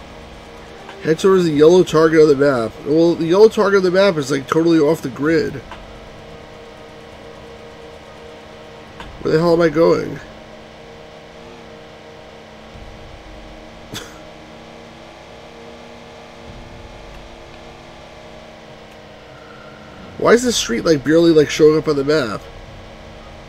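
A middle-aged man talks calmly into a close microphone, in short bursts.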